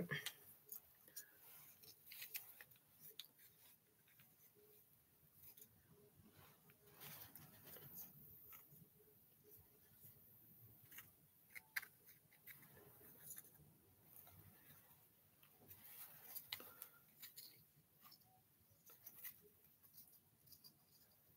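Small plastic clicks and rustles come from handling an object.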